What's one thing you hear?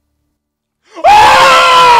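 A young man lets out a loud, sudden shout.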